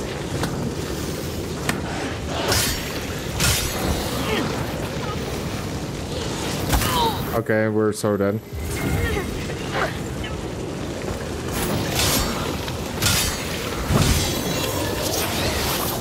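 Flames burst out in loud whooshing blasts.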